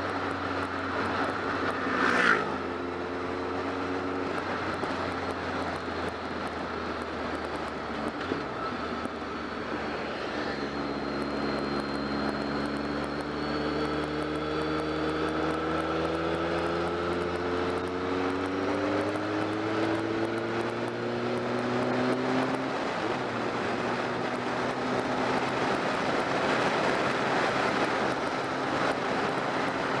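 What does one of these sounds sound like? A motorcycle engine hums steadily and rises in pitch as it speeds up, then drops as gears change.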